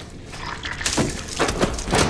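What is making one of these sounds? Water drips onto a hard floor.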